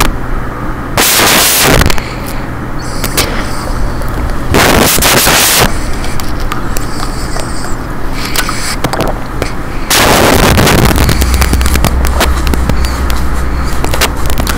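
A pickaxe strikes rock over and over with sharp metallic clanks.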